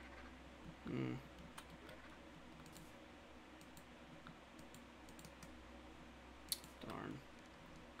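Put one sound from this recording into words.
Soft game menu clicks tick as an inventory opens and closes.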